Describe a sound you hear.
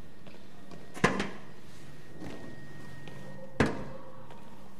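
Metal paint cans clank as they are set down.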